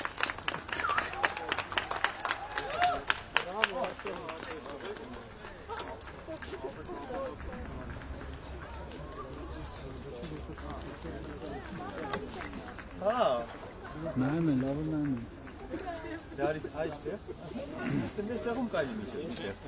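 Several young people talk and laugh nearby.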